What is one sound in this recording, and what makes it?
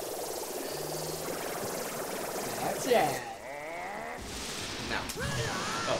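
A glowing energy ball crackles and bursts with a bright magical whoosh.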